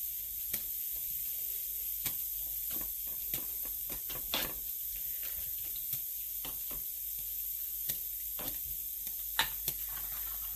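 Wooden sticks tap and knock against a metal pot.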